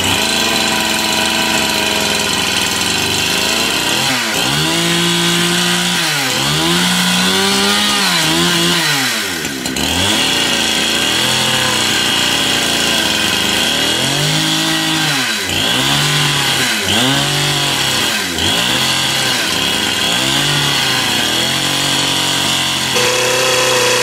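A chainsaw engine sputters and revs up and down again and again.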